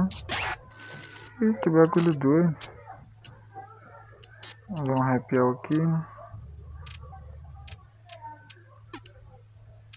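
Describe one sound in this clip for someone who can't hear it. Short electronic menu blips chirp now and then.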